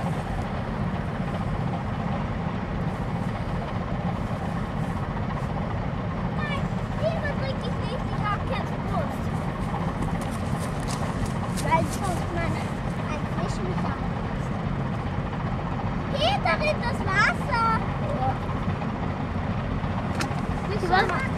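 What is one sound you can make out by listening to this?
A boat engine rumbles steadily and low.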